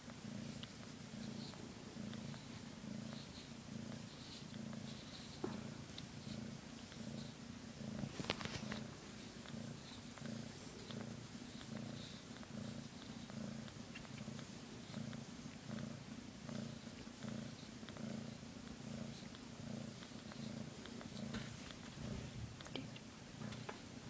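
A cat purrs loudly and steadily, close by.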